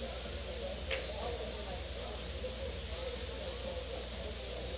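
Pool balls roll and knock across the table.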